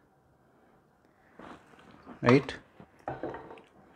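Oil pours into a pan.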